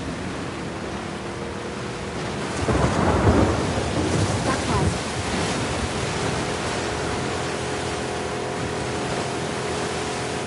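A small outboard motor hums steadily.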